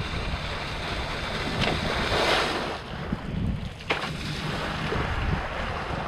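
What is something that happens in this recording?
A board skims and splashes across choppy water.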